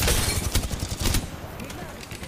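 Gunshots fire in quick bursts, loud and close.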